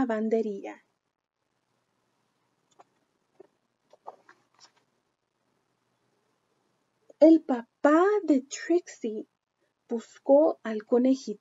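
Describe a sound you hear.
A young woman reads aloud expressively, close to the microphone.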